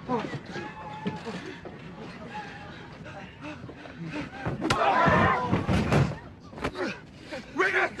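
People shout and scream in a panic.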